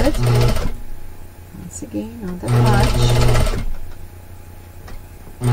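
A sewing machine stitches in short, fast bursts.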